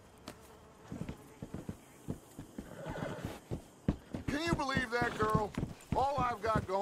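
Horse hooves clop on wooden planks.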